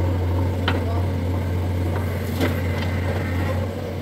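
Soil and clods thud down into a trailer.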